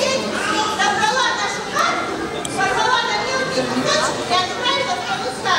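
A young girl sings into a microphone over a loudspeaker.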